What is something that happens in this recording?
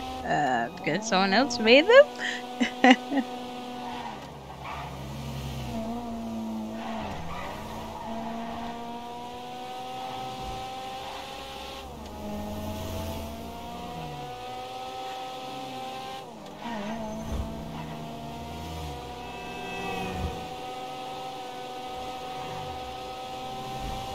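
A sports car engine hums steadily as the car speeds along, its pitch slowly rising and dropping with each gear change.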